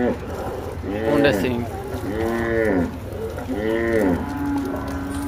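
A water buffalo lows loudly several times nearby.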